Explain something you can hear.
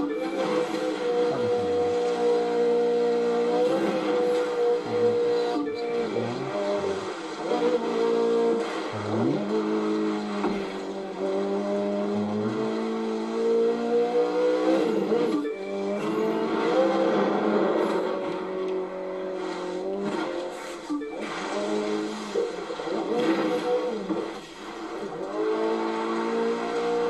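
A car engine roars and revs up and down through a loudspeaker.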